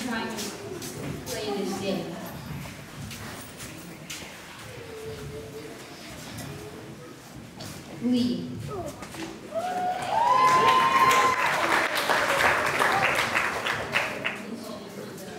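A young boy speaks into a microphone over a loudspeaker.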